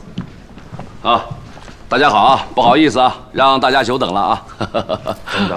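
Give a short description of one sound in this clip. A man speaks up cheerfully and apologetically, close by.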